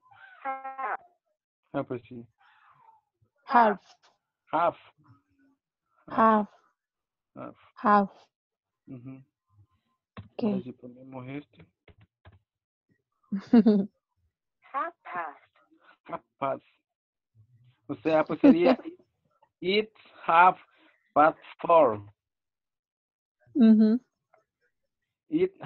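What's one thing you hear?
A young woman speaks in short phrases over an online call.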